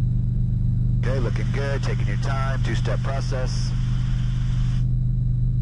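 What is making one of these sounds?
A man speaks calmly over a headset intercom.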